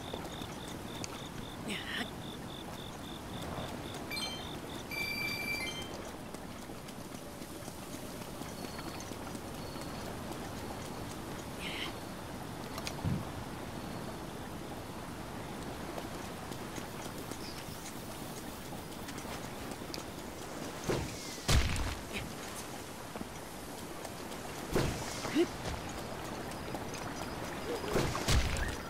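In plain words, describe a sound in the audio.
Footsteps patter on grass and rock.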